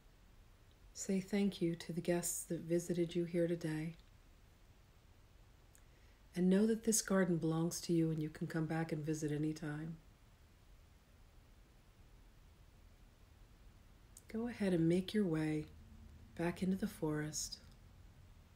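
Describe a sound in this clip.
A middle-aged woman speaks slowly and calmly close to a microphone, in phrases with long pauses.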